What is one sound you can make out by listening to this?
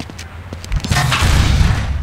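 A heavy metal object clatters and bangs.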